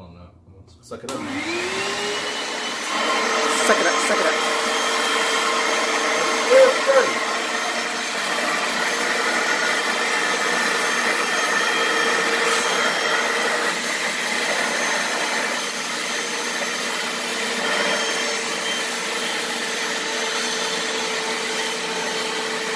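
An upholstery cleaner's motor whirs steadily.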